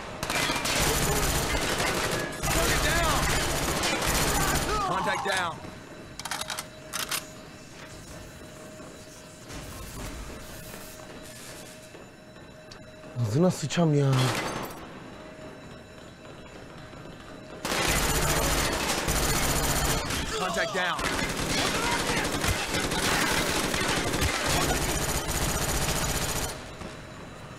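Rapid gunfire rattles loudly in long bursts.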